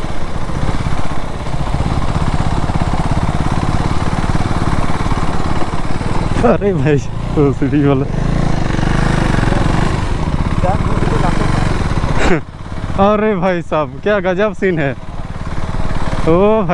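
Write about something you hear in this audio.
A motorbike engine hums steadily as it rides over bumpy ground.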